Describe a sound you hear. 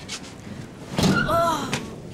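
A woman drops onto a bed with a soft thump.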